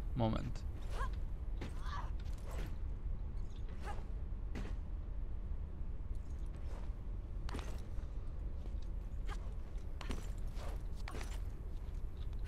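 Short thuds and scrapes sound as a figure jumps and grabs ledges.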